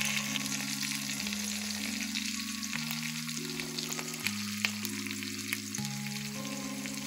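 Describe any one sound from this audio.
Food sizzles and crackles in hot oil in a pan.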